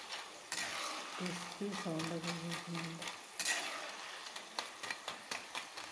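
A metal spatula scrapes against a metal pan.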